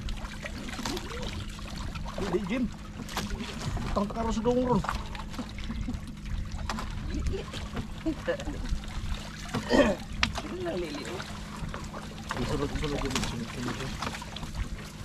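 Men talk to each other nearby.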